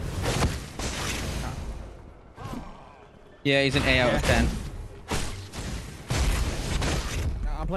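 A blade swishes through the air in a quick slash.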